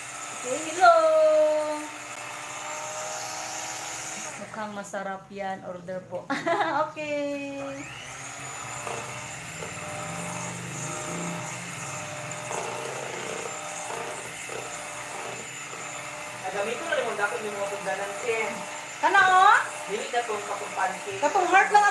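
An electric hand mixer whirs steadily while beating batter.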